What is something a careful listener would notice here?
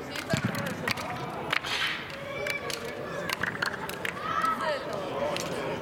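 Hands clap together in handshakes.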